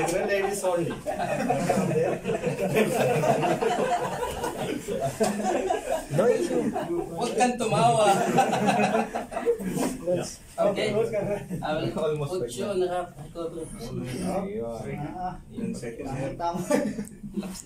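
A man speaks calmly to a group nearby.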